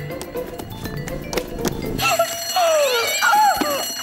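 A woman cries out in a cartoon voice.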